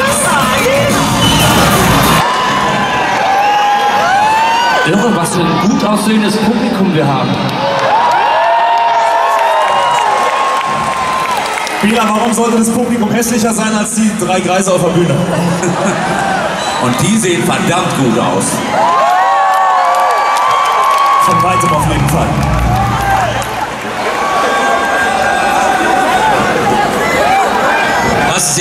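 A man sings loudly through a loudspeaker in a large hall.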